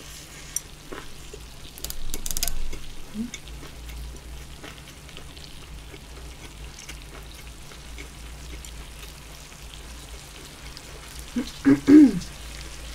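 A young woman chews food with wet smacking sounds close to a microphone.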